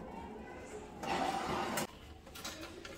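A metal oven rack scrapes as a tray slides out.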